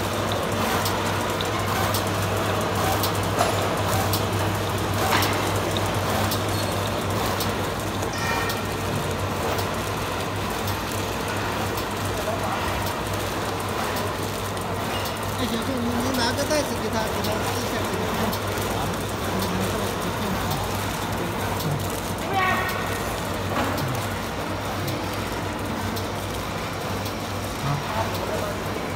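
A machine hums and clatters steadily.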